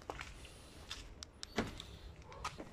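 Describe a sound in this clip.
A car's central locking clicks.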